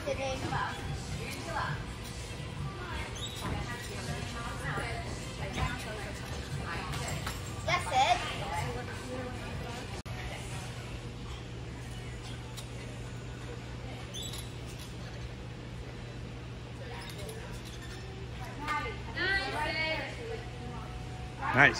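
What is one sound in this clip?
A gymnastics bar creaks and rattles as a gymnast swings around it.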